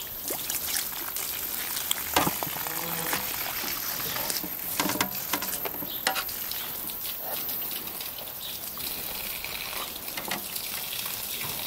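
A knife cuts through raw chicken.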